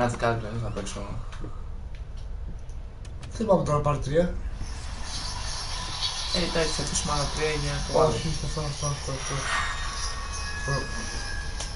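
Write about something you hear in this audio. A second young man talks and reacts loudly close to a microphone.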